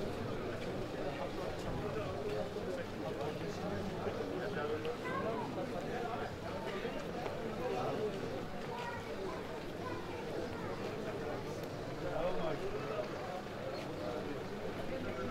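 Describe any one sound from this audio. A crowd of men chatter nearby outdoors.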